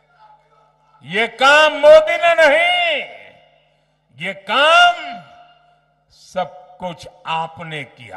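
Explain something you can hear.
A crowd of men shouts and chants loudly.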